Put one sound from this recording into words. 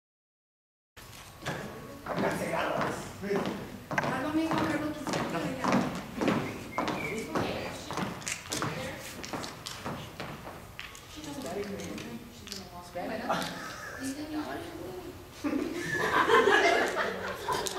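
Young actors speak lines loudly on a stage in a large echoing hall.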